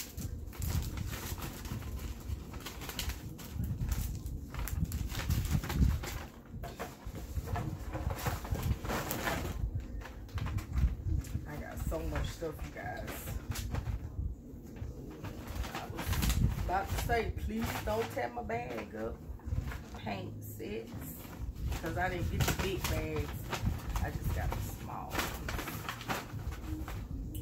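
Paper bags and packaging rustle and crinkle close by.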